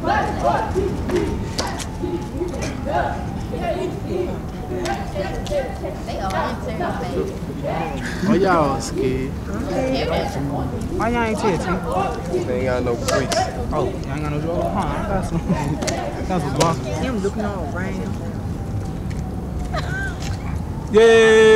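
Hands clap sharply in rhythm.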